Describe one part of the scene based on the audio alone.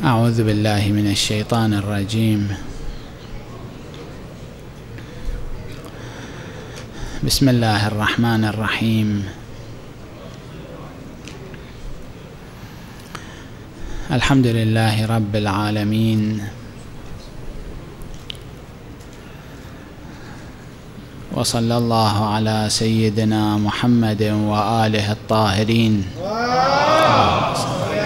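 A man speaks slowly and solemnly into a microphone, in bursts with long pauses, in an echoing hall.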